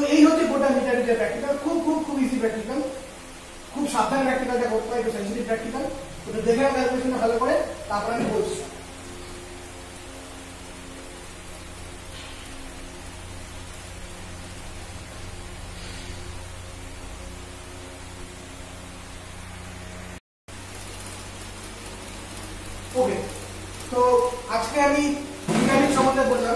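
A man explains calmly and close by.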